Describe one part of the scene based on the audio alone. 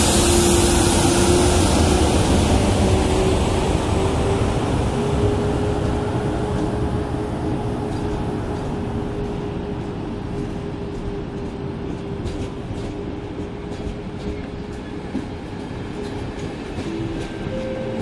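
An electric locomotive hums with a steady whine as it pulls away.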